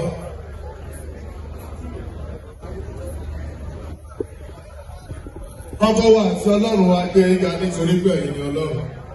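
A crowd of men and women chatters in a lively room.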